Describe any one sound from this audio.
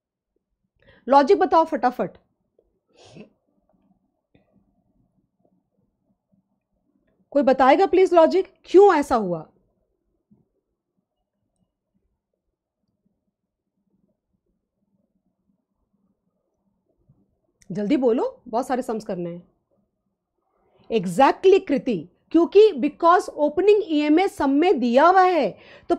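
A woman speaks calmly into a close microphone, in short bursts with long pauses.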